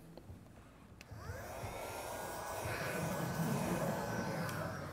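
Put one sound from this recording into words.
A cloth eraser rubs across a chalkboard.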